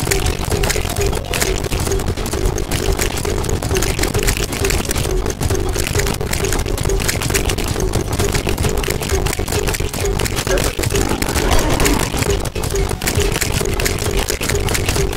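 Game weapons fire in rapid bursts of sharp zaps.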